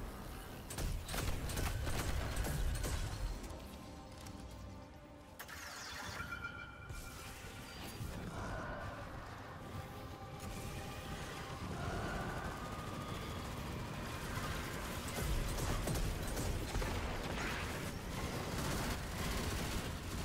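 Energy blasts boom with deep rumbles.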